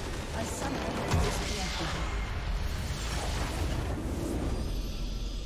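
A deep rumbling blast booms as a huge crystal explodes.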